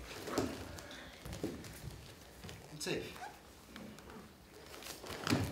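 Bare feet thump and slide on a wooden floor.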